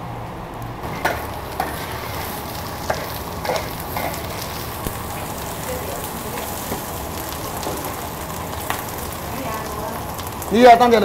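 A metal spatula scrapes and clatters in a wok.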